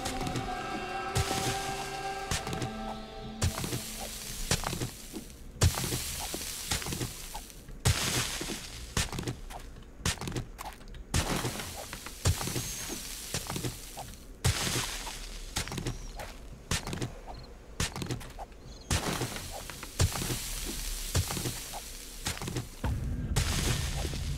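A pickaxe strikes rock again and again with sharp knocks.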